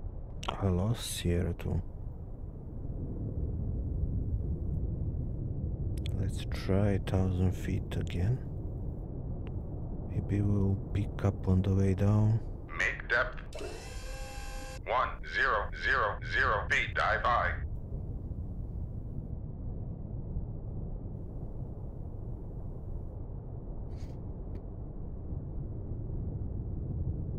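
A submarine's engine rumbles low and steady underwater.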